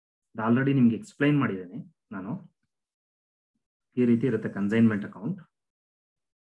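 A man speaks calmly into a microphone, explaining.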